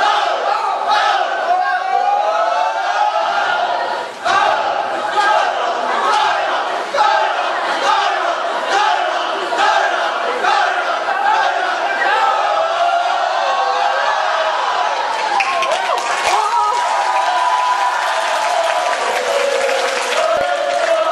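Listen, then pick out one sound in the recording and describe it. A group of young men chant and shout loudly in unison in a large echoing hall.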